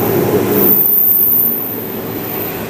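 A train pulls away with a loud rumble.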